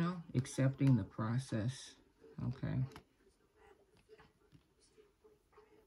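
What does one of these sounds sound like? A playing card is slid and tapped down onto paper.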